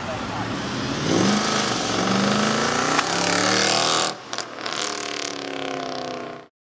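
A car engine revs hard as the car accelerates away and fades into the distance.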